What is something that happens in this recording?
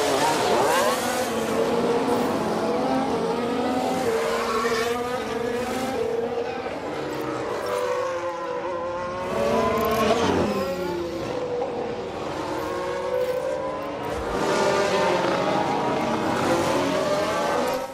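Racing car engines whine and rise and fall in pitch as cars speed past.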